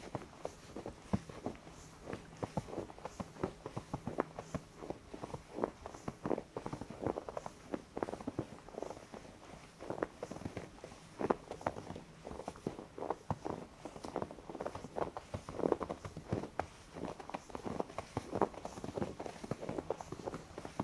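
Footsteps crunch steadily in deep snow close by.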